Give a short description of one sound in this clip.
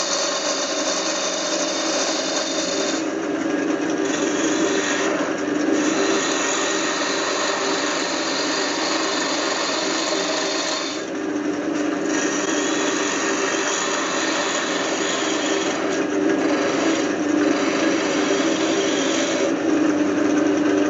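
A chisel scrapes and hisses against spinning wood.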